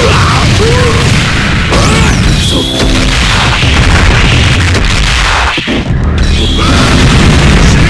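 Blasts of energy crackle and roar.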